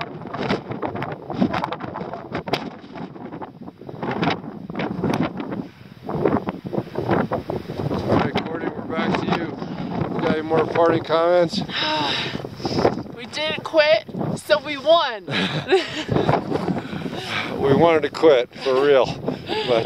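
Wind gusts roughly across a microphone outdoors.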